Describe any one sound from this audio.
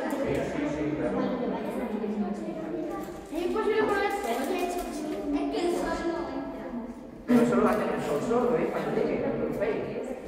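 Children and teenagers chatter and talk close by in a room with some echo.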